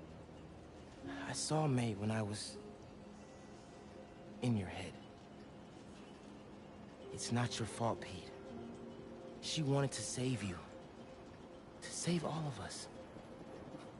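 A second young man speaks softly and reassuringly, close by.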